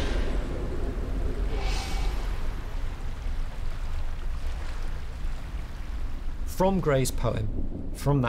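Gentle water laps against a pebbly shore outdoors.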